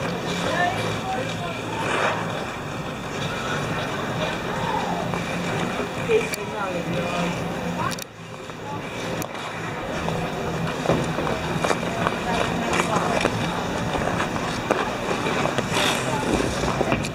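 Ice skate blades scrape and glide over ice.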